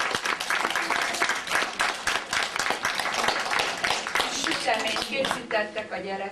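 A crowd of adults applauds in a room.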